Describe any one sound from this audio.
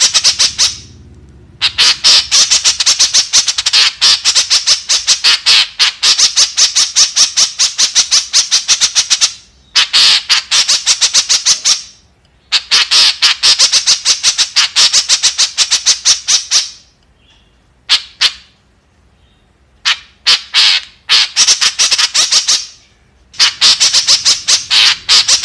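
A bird gives rapid, chattering trills in bursts.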